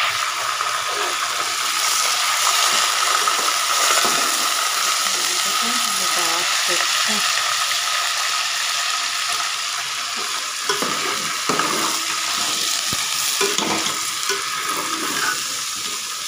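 Meat sizzles and crackles in a hot pot.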